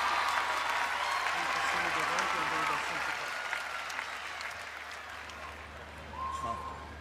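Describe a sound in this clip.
A crowd cheers loudly in a large echoing hall, then slowly fades.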